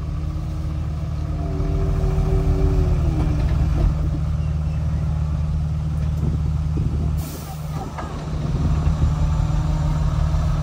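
Soil slides off a dump truck onto a pile.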